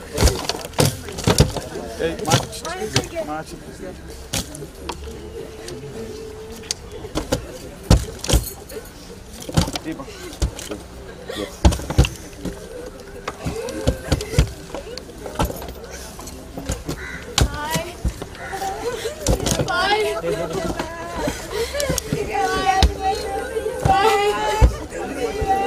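Clods of earth thud onto a wooden coffin.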